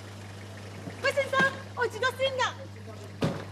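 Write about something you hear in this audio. A young woman speaks with animation at close range.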